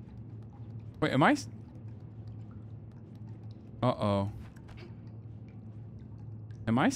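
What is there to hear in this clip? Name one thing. A man speaks in short, animated bursts close to a microphone.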